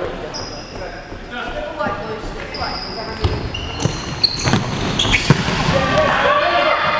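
Men shout to each other across an echoing hall.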